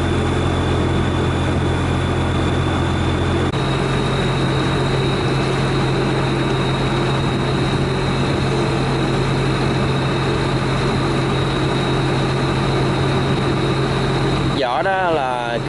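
A boat engine chugs steadily.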